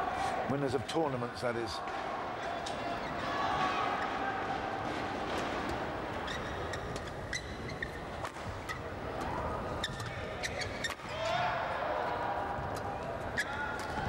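A shuttlecock is struck sharply with rackets.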